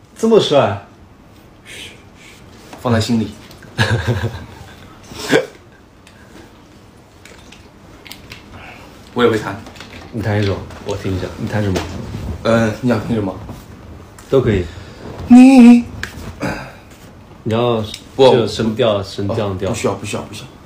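A second young man speaks casually nearby.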